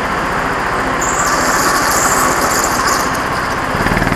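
Kart tyres squeal on a smooth floor through the turns.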